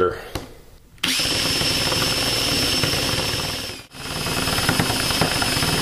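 A cordless drill whirs steadily.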